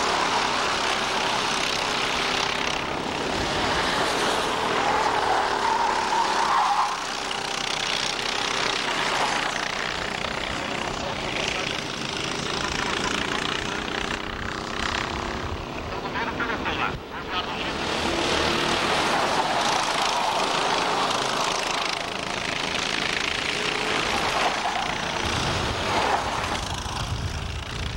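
Kart engines buzz and whine as they race past.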